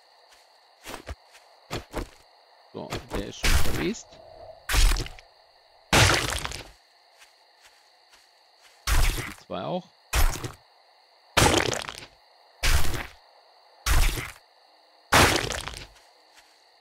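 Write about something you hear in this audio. A blade hacks into a body.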